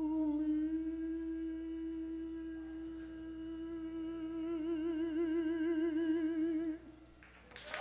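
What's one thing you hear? A man sings a long held note with vibrato through a microphone in a large hall.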